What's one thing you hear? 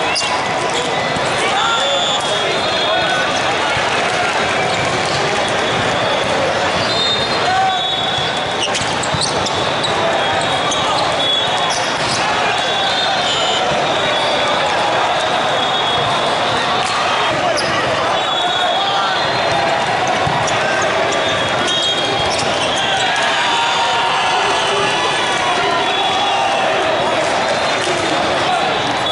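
A crowd of voices chatters in a large echoing hall.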